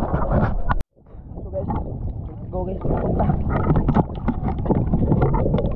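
Water laps and splashes close by at the surface.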